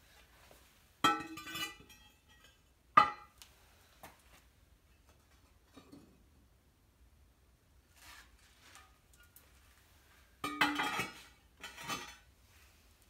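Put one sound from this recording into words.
Ceramic pieces clink and knock as they are lifted from a kiln.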